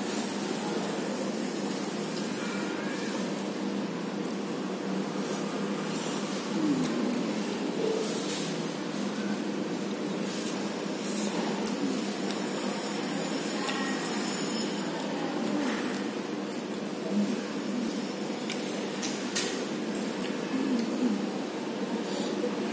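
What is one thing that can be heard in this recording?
A metal fork clinks and scrapes against a paper cup.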